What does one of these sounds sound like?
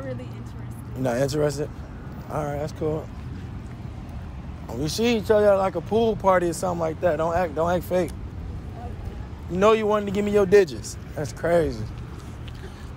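A young man talks nearby in a lively way.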